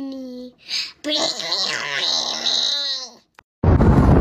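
A small child laughs and babbles close by.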